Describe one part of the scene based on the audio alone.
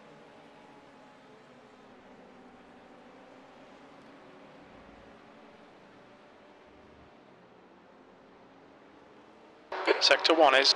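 Racing car engines hum steadily in the distance.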